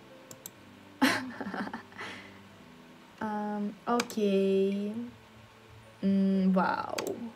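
A young woman talks and vocalises with animation, close to a microphone.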